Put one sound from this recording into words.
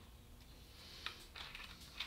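An aerosol can sprays with a short hiss.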